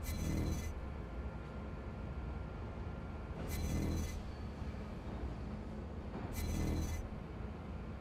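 Balls roll with a rumbling clatter through a maze.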